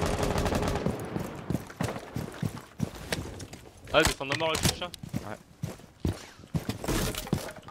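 Quick footsteps thud on hard ground.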